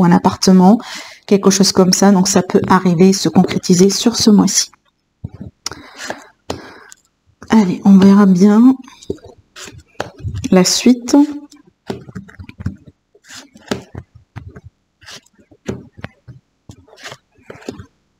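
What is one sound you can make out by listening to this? Cards riffle and flick as a deck is shuffled.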